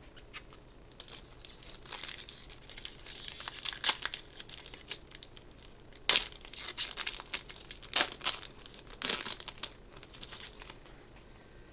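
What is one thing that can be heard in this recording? A foil card pack crinkles and tears open in someone's hands.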